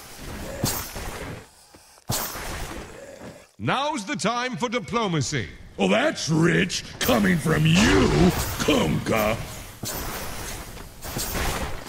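Magic spells whoosh and weapons clash in a fantasy battle.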